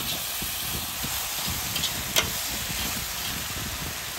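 A metal spatula scrapes and stirs vegetables in an iron pot.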